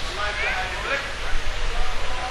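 A man chants in a drawn-out, melodic voice through a microphone.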